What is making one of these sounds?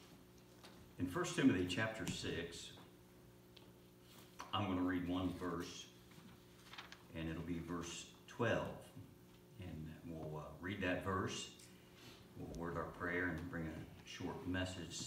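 A middle-aged man reads aloud calmly at a microphone.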